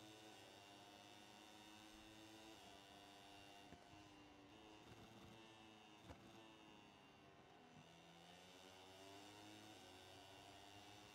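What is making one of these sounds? A racing motorcycle engine whines at high revs, dropping in pitch with each gear change and rising again.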